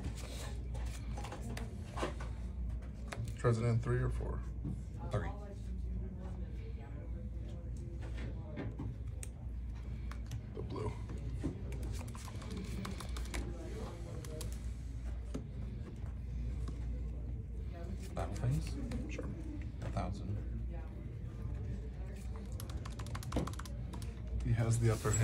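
Playing cards shuffle and slide softly in hands.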